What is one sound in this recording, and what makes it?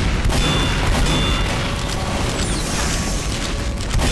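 A flamethrower roars.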